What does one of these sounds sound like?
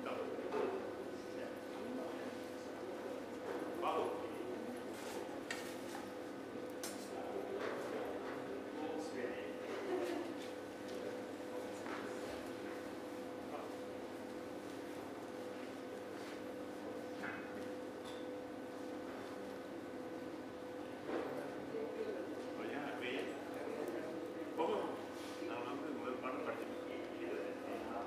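People murmur quietly in a large echoing hall.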